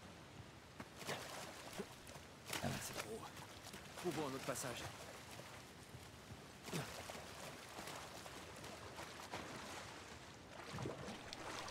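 A man talks into a close microphone with animation.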